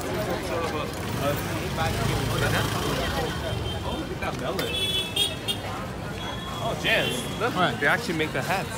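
Scooter engines hum and rumble nearby.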